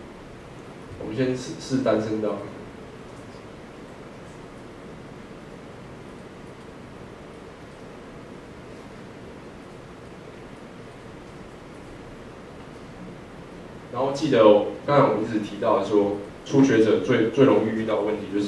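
A young man speaks calmly through a microphone in a large room.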